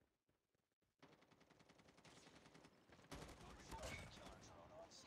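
Rapid gunfire rattles from a rifle.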